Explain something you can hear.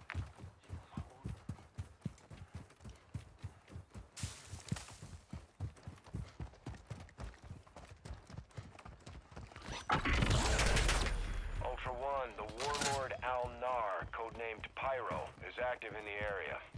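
Quick footsteps run over sand and pavement.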